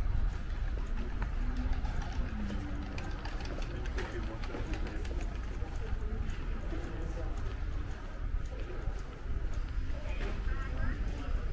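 People chatter in the distance.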